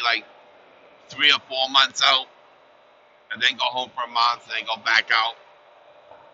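A middle-aged man talks calmly into a headset microphone.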